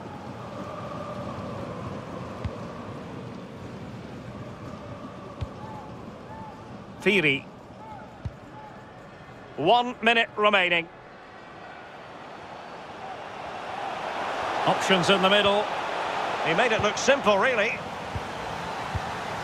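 A stadium crowd murmurs and cheers steadily, swelling toward the end.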